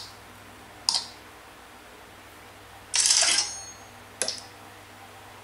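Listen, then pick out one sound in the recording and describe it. Short electronic game sounds chime from a tablet speaker.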